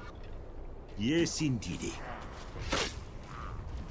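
Fantasy game spell effects whoosh and crackle in short bursts.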